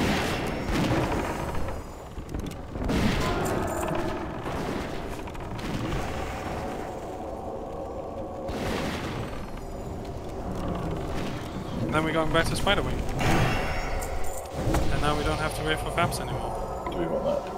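Spell blasts and weapon clashes ring out in a fast fantasy battle.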